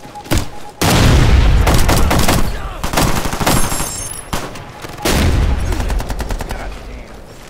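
Rifle gunfire rattles in loud rapid bursts.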